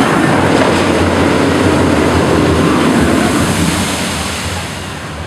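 Water sprays out with a loud rushing hiss.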